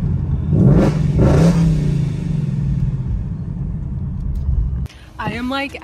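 A car engine roars loudly as it accelerates.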